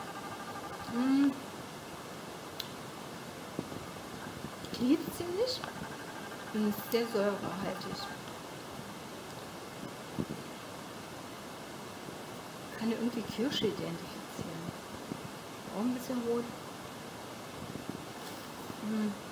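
A middle-aged woman speaks calmly and close by, in short phrases with pauses.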